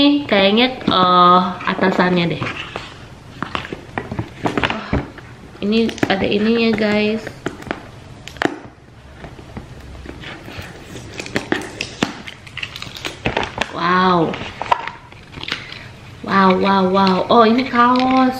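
Paper crinkles and tears as a packet is opened.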